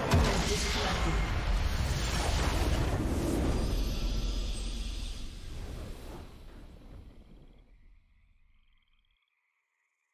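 A triumphant victory fanfare swells and then fades away.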